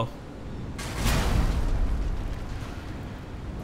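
Heavy metal pipes fall with a deep, rumbling crash.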